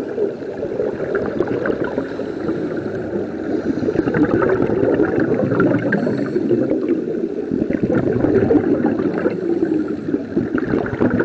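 Scuba breathing bubbles and gurgles underwater, close by.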